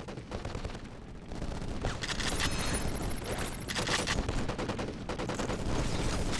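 An explosion booms nearby.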